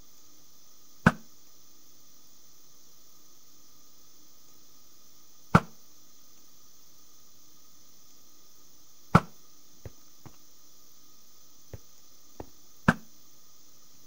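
A bow twangs as arrows are loosed, one after another.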